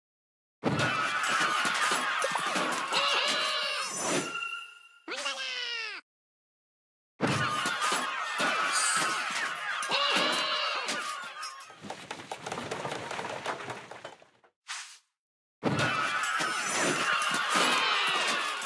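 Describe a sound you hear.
Cartoon battle sound effects clatter and squeak as small creatures fight.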